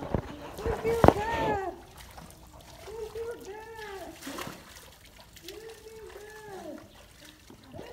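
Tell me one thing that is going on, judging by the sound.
Feet splash softly through shallow water.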